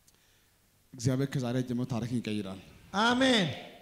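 An elderly man speaks into a microphone, heard through loudspeakers.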